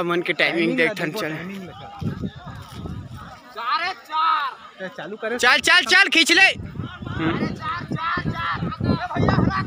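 Several young men shout and call out across an open field, some close by.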